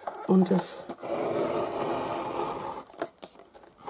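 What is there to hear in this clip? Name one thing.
A paper trimmer blade slides along and slices through paper.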